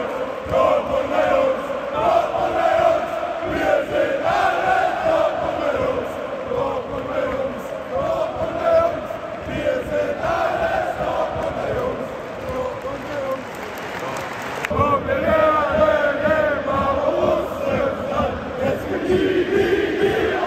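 A large crowd of men sings and chants loudly outdoors.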